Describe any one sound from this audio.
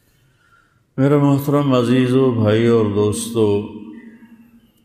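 A man chants in a melodic voice, close to a microphone.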